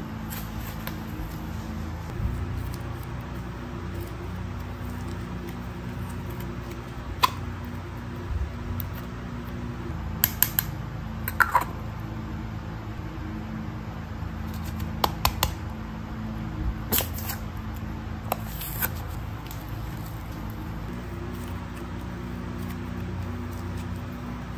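Soft putty squishes and stretches between fingers.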